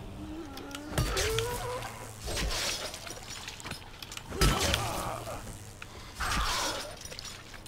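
A blunt weapon thuds heavily into flesh.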